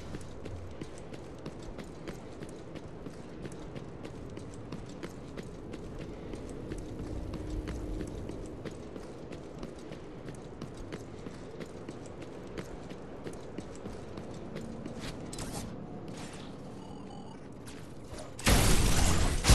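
Footsteps of a game character run quickly over hard ground.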